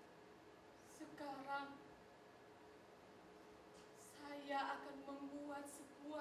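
A young woman sings in a drawn-out voice.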